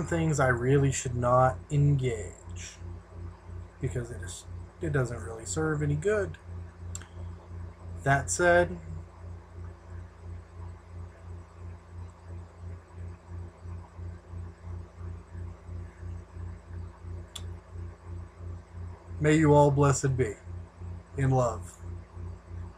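A man speaks casually into a close microphone, in short bursts with pauses.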